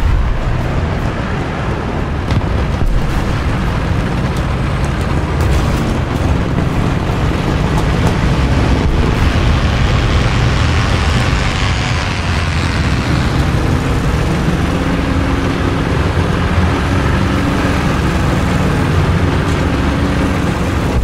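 Tank tracks clank and grind over the ground.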